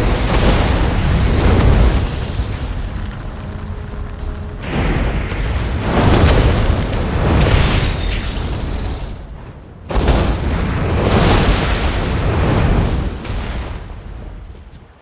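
Fiery spell blasts roar and crackle in loud bursts.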